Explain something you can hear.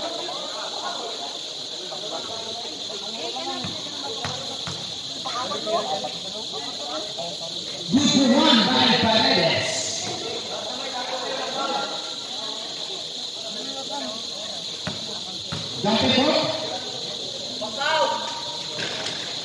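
Young people shout and call out in a large echoing hall.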